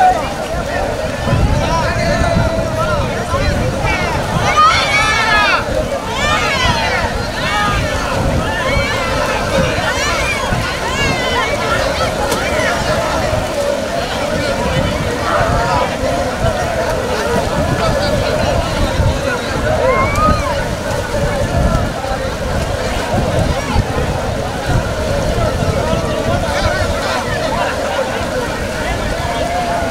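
A crowd of men shout and chant loudly outdoors.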